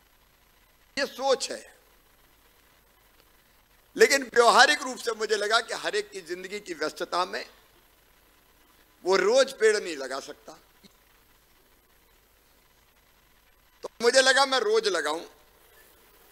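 A middle-aged man speaks into a microphone over a loudspeaker, pausing between phrases.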